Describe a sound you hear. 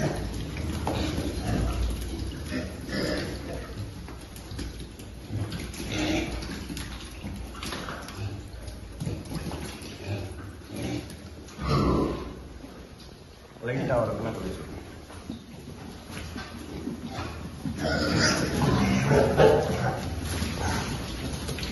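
Pigs grunt and squeal.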